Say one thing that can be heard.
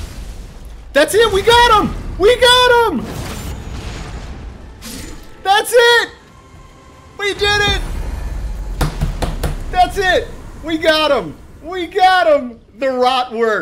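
A man shouts and cheers excitedly close to a microphone.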